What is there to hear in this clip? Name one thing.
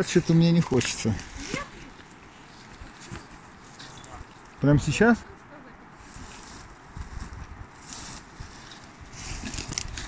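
Branches rustle and snap as a man pushes through them.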